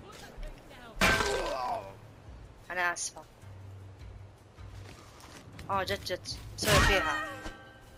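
An axe swings and strikes with a heavy thud.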